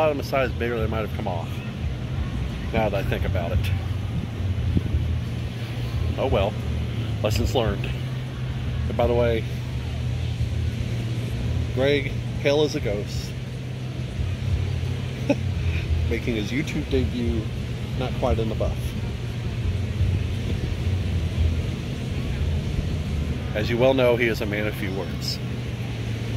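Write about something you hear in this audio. A man talks casually close by, in intermittent phrases.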